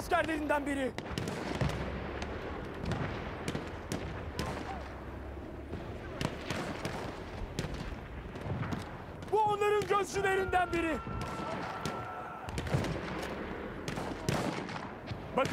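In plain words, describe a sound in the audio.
Gunshots crack in rapid bursts, some near and some far off.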